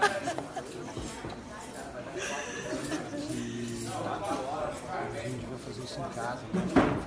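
A crowd murmurs and chatters all around.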